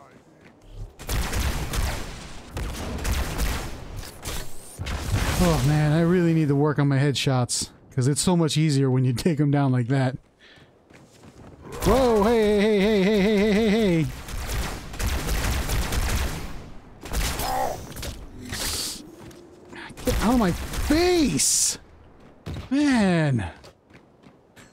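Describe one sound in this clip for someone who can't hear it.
Energy guns fire in rapid, zapping bursts.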